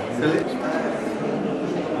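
A man talks calmly nearby, in an echoing room.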